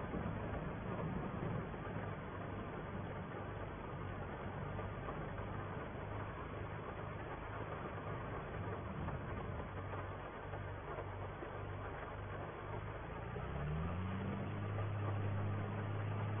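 A tractor engine hums steadily and rises in pitch as it speeds up.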